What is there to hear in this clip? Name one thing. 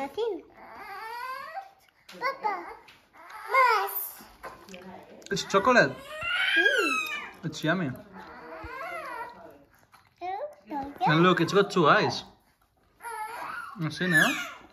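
A young boy talks with excitement close by.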